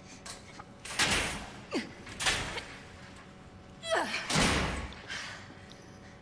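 A heavy metal gate rattles and scrapes as it is pushed up.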